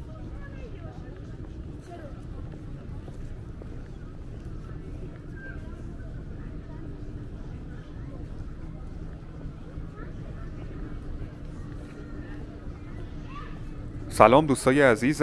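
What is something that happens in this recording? A crowd of people chatters softly outdoors.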